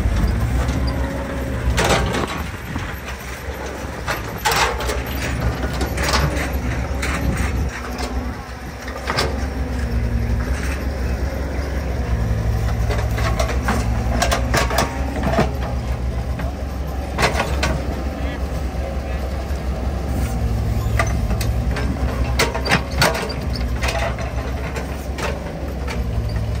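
A diesel excavator engine rumbles and whines steadily close by.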